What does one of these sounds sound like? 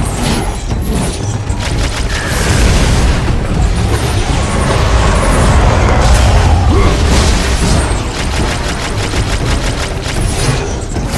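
Loud rumbling explosions boom in the background.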